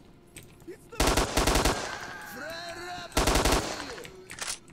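Rapid gunfire bursts out in sharp volleys.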